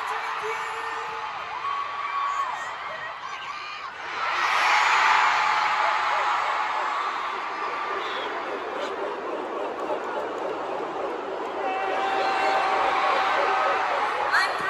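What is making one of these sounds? A large arena crowd cheers and screams loudly.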